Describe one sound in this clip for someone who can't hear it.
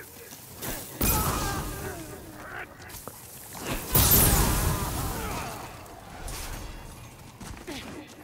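Flames roar and crackle in a burst of fire.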